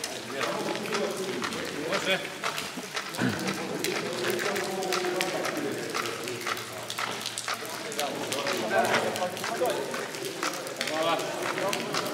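Several adults talk close by, outdoors.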